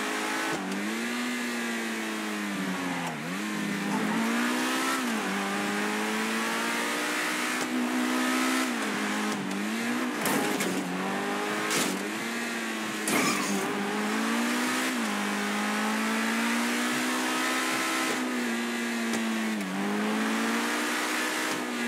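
A sports car engine roars and revs up and down through gear changes.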